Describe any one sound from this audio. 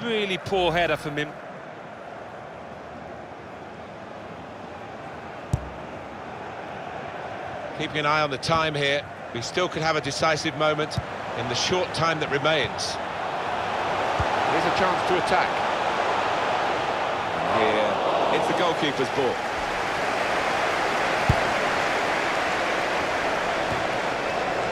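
A large stadium crowd murmurs steadily and swells into a roar.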